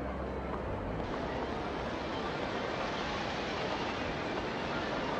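A busy street murmurs with steady noise.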